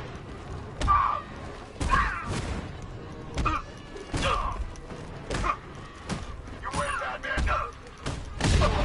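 Punches and kicks land with heavy thuds again and again.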